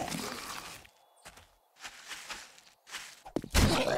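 A zombie growls up close.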